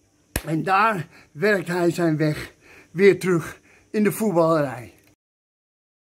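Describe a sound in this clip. An older man talks with animation close to the microphone.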